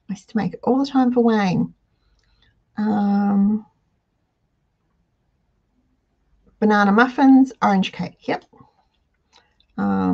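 An elderly woman speaks calmly and close to a microphone, in short bursts with pauses.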